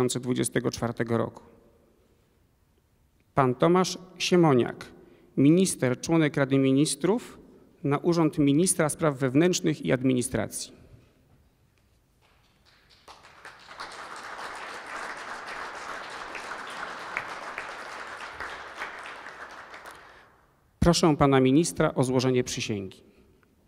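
A man reads out through a microphone in a large echoing hall.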